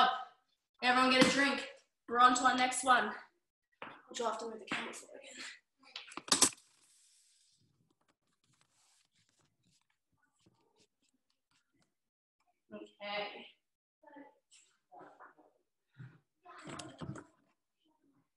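A young woman talks calmly and clearly, close by.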